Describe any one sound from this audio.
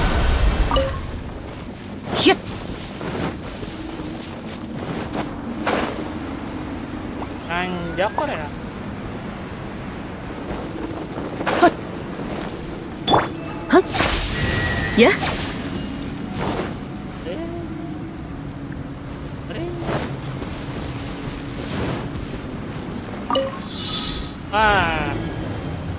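Magic blasts crackle and whoosh in short bursts.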